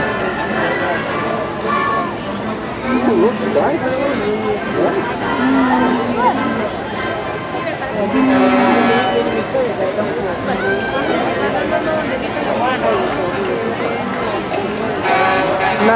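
A large crowd chatters and cheers outdoors along a street.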